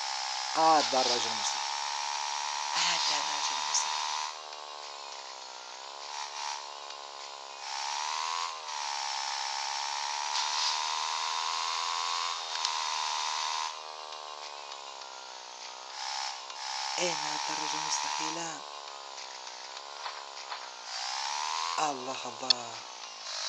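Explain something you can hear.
A motorbike engine hums steadily and revs up and down.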